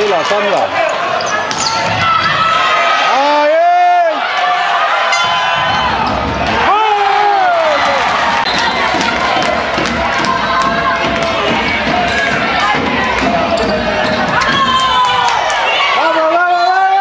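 Young girls shout and cheer loudly in an echoing hall.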